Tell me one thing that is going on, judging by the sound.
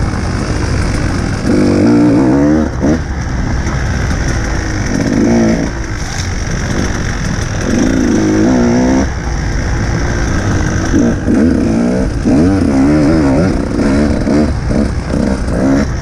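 Wind rushes and buffets loudly past a fast-moving rider.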